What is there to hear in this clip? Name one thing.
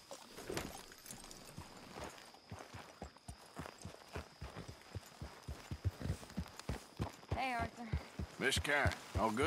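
Horse hooves thud steadily on soft ground at a trot.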